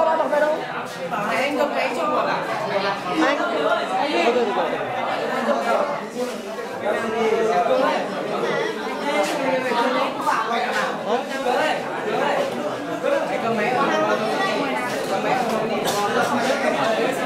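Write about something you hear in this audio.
Many young men and women chatter all around at once, close by.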